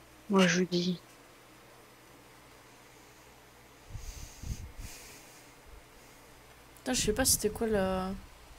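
A young woman speaks briefly and casually into a nearby microphone.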